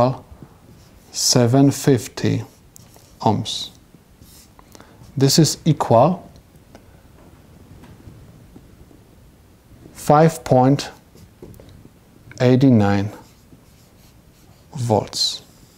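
A man speaks calmly and clearly, close to a microphone, in short phrases with pauses.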